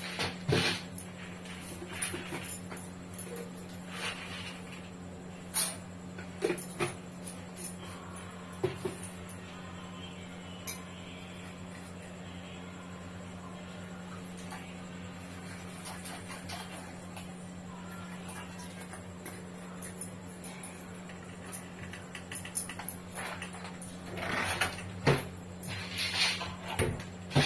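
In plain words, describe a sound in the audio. Glass jars and containers clink and knock on a countertop.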